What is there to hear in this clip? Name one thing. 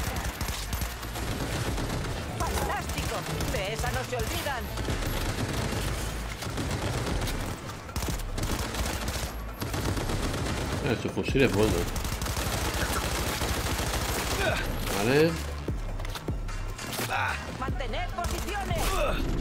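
Gunfire bursts loudly and repeatedly.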